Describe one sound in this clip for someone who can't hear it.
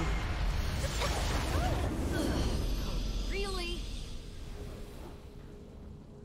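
A deep, booming explosion rumbles and slowly fades.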